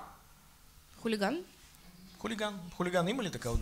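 A young woman speaks brightly through a microphone.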